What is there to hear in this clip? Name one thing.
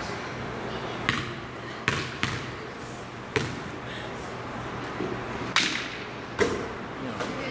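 A basketball bounces on a hard floor several times.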